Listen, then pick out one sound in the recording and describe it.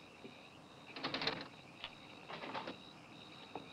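A door rattles as someone tries the handle.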